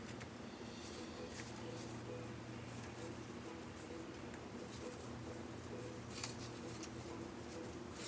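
A brush dabs and scrapes through hair.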